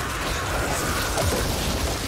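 A flamethrower roars.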